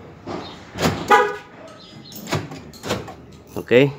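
Car door locks clunk in response to a remote key.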